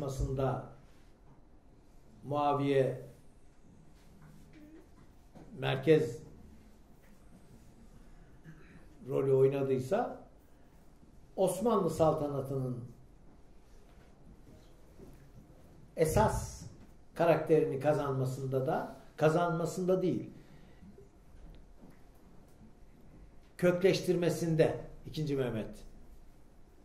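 An elderly man speaks calmly into a microphone in short phrases with pauses.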